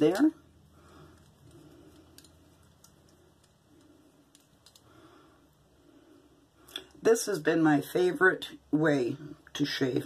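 Metal parts of a razor click as they are handled.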